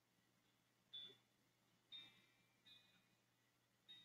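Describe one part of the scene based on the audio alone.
A handheld game console plays short electronic beeps.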